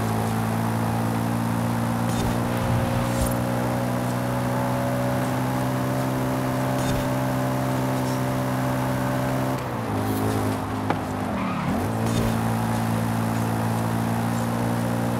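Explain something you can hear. A car engine roars steadily at high speed, dipping briefly as the gears shift.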